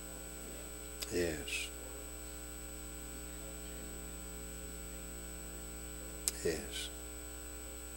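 An elderly man speaks a few slow, quiet words into a microphone, with long pauses between them.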